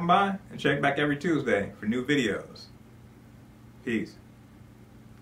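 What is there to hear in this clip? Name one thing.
A middle-aged man speaks calmly into a close microphone.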